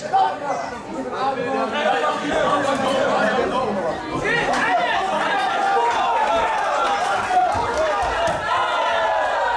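A crowd of spectators talks and shouts in an indoor hall.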